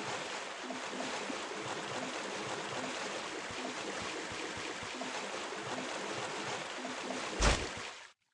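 Footsteps run quickly through grass and shallow water.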